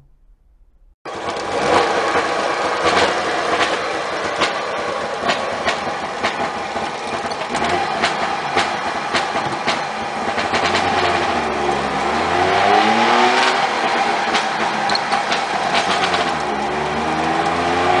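A car engine runs and revs as the car drives along.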